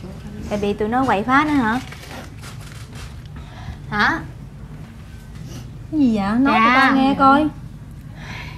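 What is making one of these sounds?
Young women talk with animation, close by.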